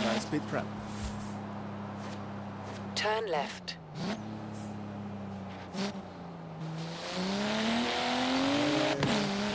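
A sports car engine slows down, then revs up as the car accelerates.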